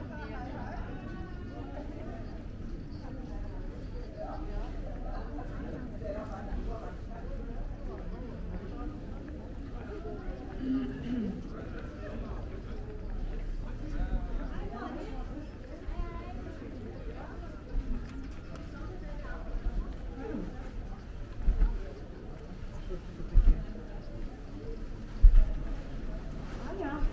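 Men and women chat quietly in a large echoing hall.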